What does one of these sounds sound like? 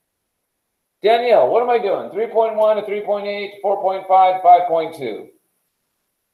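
A man speaks calmly and close by, explaining.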